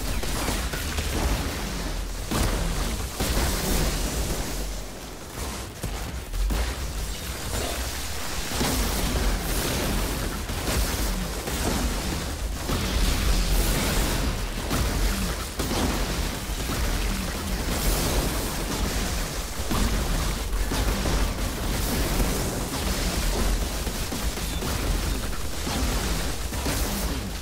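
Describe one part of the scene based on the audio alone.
Heavy blows thud and boom.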